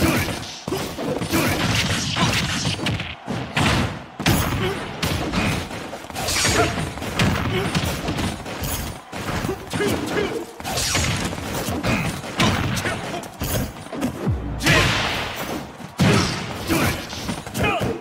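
Fighting game hits and blasts thud and crackle quickly.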